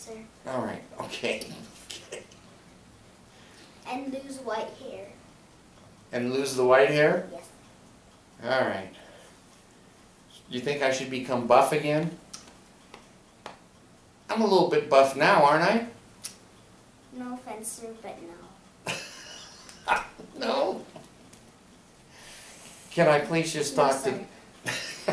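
A young girl talks nearby in short bursts.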